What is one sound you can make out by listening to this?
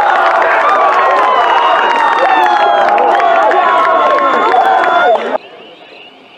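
Young men cheer and shout across an open field.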